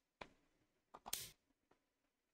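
A game piece clacks sharply onto a wooden board.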